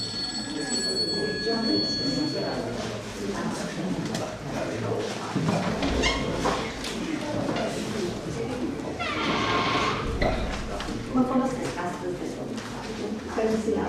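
Paper pages rustle as a booklet is leafed through.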